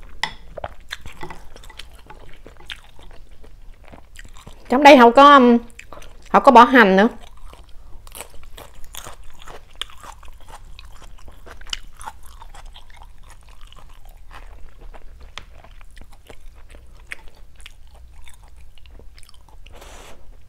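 Chopsticks clink against a glass bowl.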